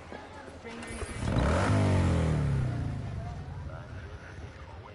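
A motorcycle engine roars and revs up, then fades.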